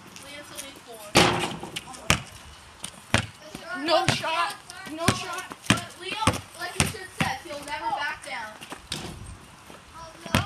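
A basketball clangs against a hoop's rim.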